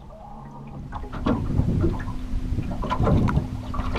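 Wind buffets outdoors over open water.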